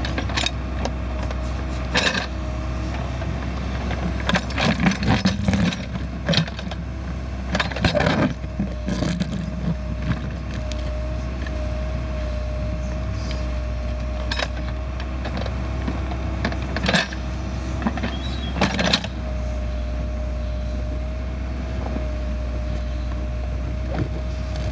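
A backhoe engine rumbles steadily close by.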